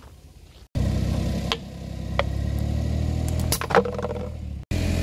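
A plastic bottle creaks and pops under a tyre.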